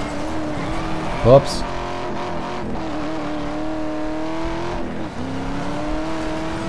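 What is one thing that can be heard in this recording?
A car engine roars steadily at high revs, dipping briefly as it shifts gear.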